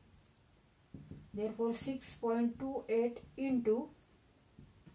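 A woman speaks clearly and calmly close to a microphone.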